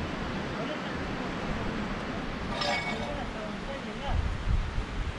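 Wind blows through palm trees outdoors, gusting now and then.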